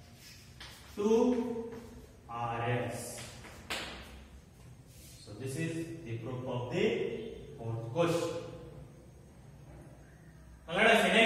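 A man speaks calmly and clearly nearby, explaining at a measured pace.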